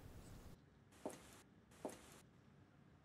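Footsteps tread on a wooden step.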